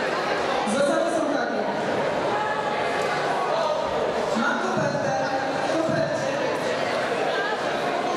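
A young woman sings through a microphone in a large echoing hall.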